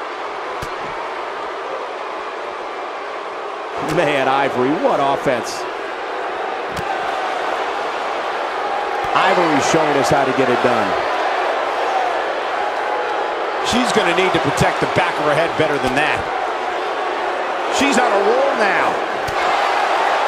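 A large crowd cheers steadily in a big echoing arena.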